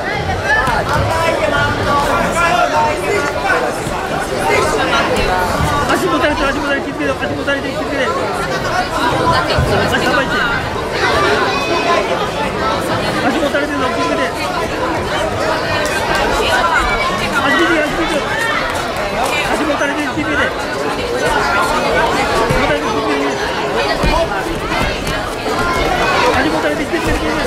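A crowd of spectators shouts and chatters throughout a large echoing hall.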